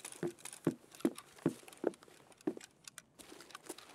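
Footsteps thud at a steady pace on a hard floor.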